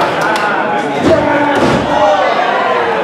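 A body thuds heavily onto a wrestling ring mat.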